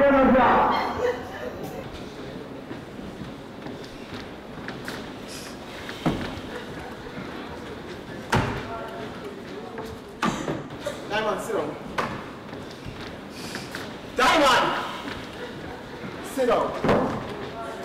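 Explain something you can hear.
A woman shouts with emotion nearby.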